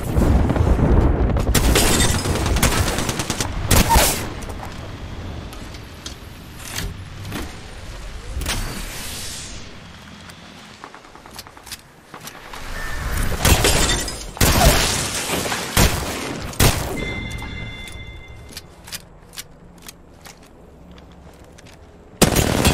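Rapid gunfire bursts out in loud, sharp volleys.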